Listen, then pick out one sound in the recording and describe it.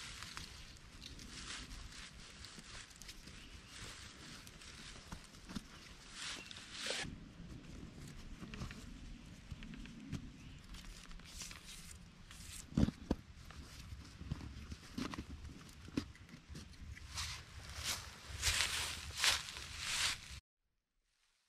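Fabric rustles and crinkles as a tarp is handled and pulled taut.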